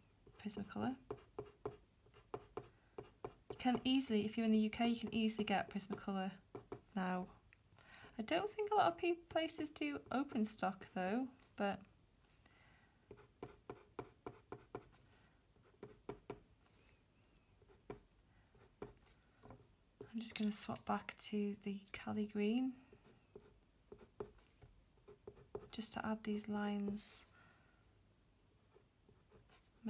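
A coloured pencil scratches lightly on paper in quick short strokes.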